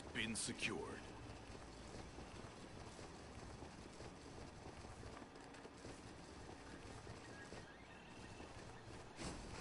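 Quick footsteps rustle through grass.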